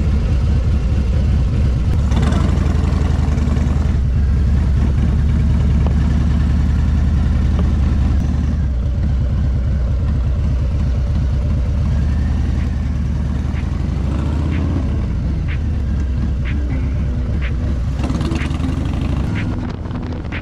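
Wind buffets past at riding speed.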